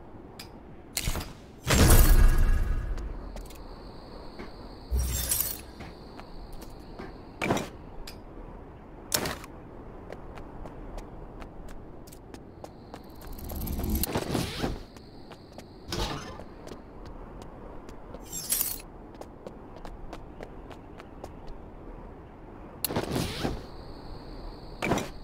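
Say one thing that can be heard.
Short chimes and clicks sound as items are picked up.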